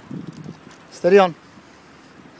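A dog gives a short high yelp.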